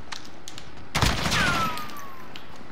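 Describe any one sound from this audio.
A gunshot bursts loudly in a video game and rings out.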